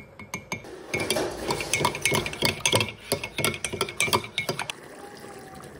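A metal spoon clinks against a ceramic mug while stirring.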